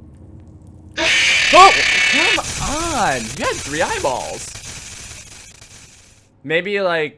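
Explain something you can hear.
A burst of harsh static hisses.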